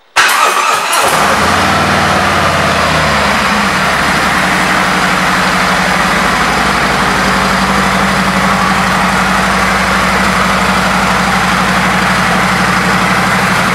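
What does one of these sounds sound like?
A motorcycle engine idles with a steady, loud rumble.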